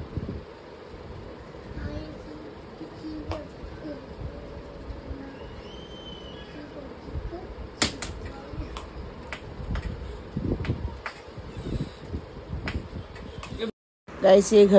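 A small child bumps a wooden cupboard door with light knocks.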